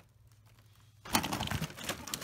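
A rabbit munches on crisp lettuce.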